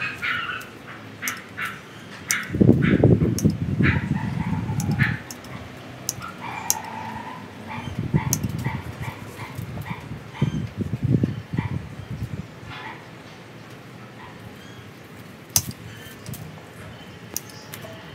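Leaves rustle as a branch is handled.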